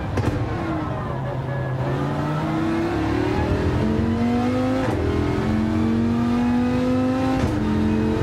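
A racing car engine roars and climbs in pitch as it accelerates through the gears.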